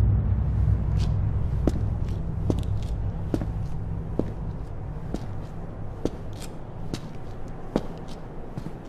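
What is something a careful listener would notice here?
Footsteps in hard shoes tap slowly on wet pavement.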